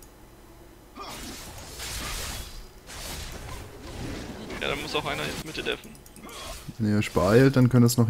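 Magic blasts whoosh and crackle in short bursts.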